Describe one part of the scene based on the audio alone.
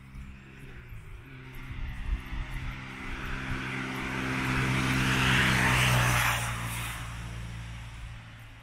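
Tyres roll on a paved road.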